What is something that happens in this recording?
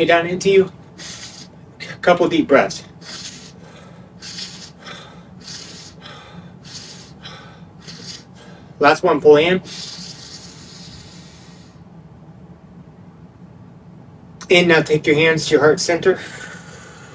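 A young man speaks calmly close to a microphone, in short phrases.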